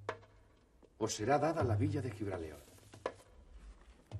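A man speaks in a low, earnest voice nearby.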